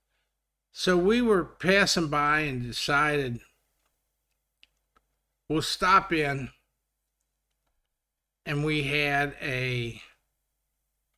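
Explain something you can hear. An elderly man speaks calmly and closely into a microphone, in short bursts with pauses.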